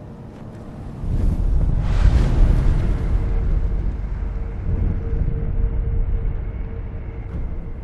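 A deep, rumbling magical whoosh swells up and lingers.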